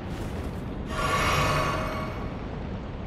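A magical chime shimmers briefly.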